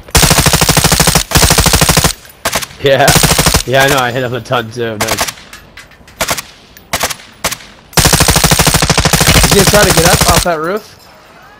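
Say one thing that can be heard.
A rifle fires in rapid automatic bursts.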